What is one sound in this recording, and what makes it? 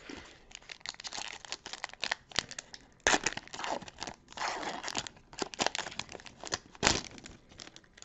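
A foil wrapper crinkles and tears as it is opened.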